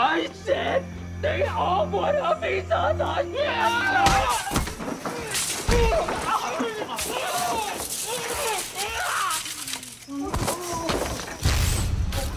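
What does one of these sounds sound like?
A man grunts and cries out in a struggle, close by.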